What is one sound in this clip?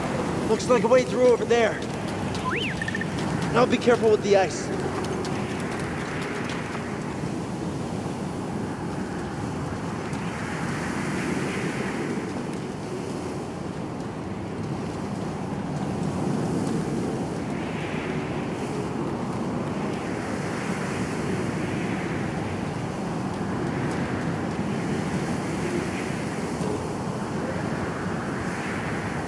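Strong wind howls through a blizzard.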